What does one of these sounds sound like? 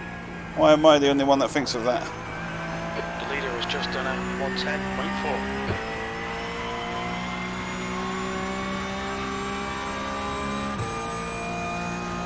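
A race car engine drones steadily, shifting gear now and then.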